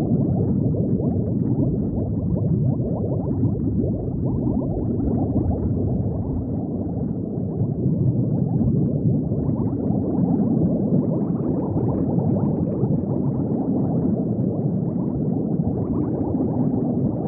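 Bubbles gurgle and burble steadily underwater.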